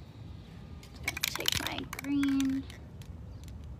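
A spray paint can rattles as it is shaken.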